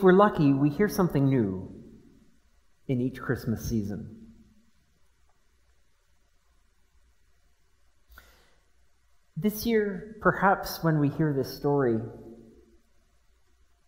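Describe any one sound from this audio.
A middle-aged man speaks calmly into a microphone, in a reverberant room, with pauses.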